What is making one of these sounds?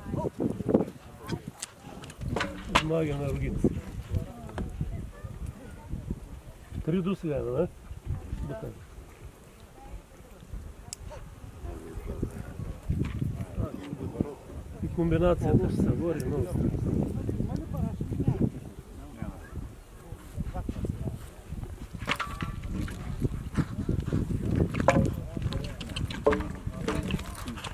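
A horse's hooves thud on grass as it canters and jumps.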